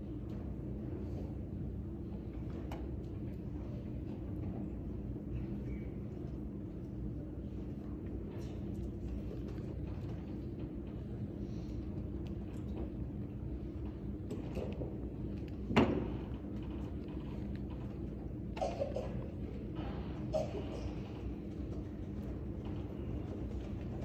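Several people murmur quietly at a distance in a large room.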